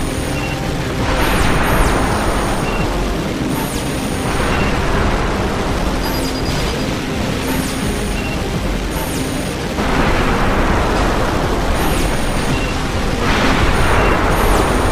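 A jet booster roars in loud rushing bursts.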